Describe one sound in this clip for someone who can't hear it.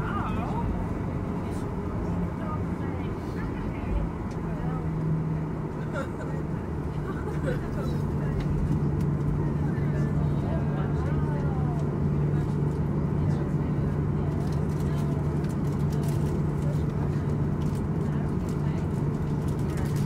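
Aircraft tyres rumble over the taxiway.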